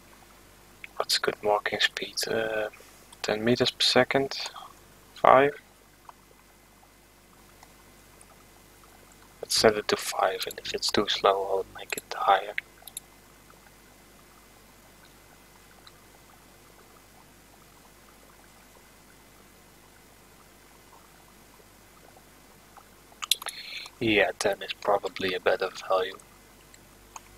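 A young man talks calmly into a close headset microphone, in short bursts with pauses.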